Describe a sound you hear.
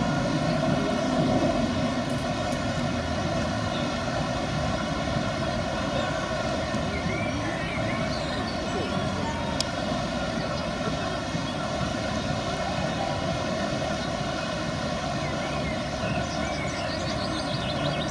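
White water rushes and roars steadily over rocks.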